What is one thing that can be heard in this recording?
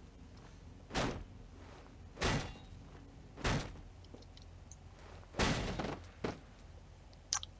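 A pickaxe strikes a hard surface.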